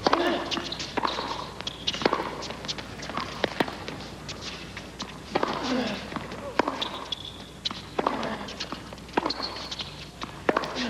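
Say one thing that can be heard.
Tennis shoes squeak sharply on the court.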